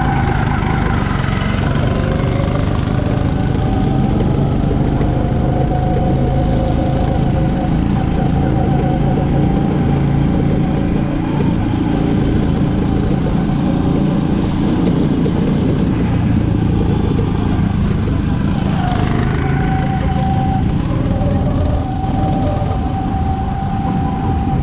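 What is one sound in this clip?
A go-kart engine buzzes loudly up close.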